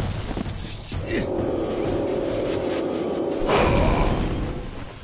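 A magic spell hums and crackles with energy, then bursts.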